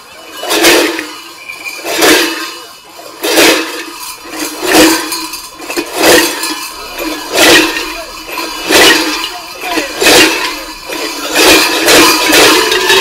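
Large cowbells clang together in heavy, rhythmic bursts.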